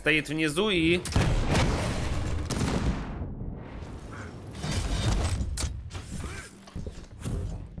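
Gunshots and explosions from a video game fire in rapid bursts.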